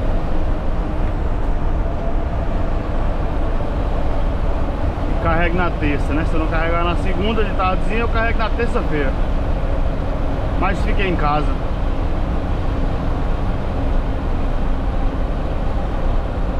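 Tyres roll on a paved road with a steady hum.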